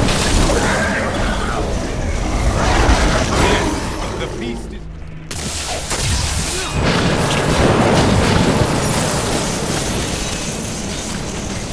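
Magic blasts crackle and boom in a video game.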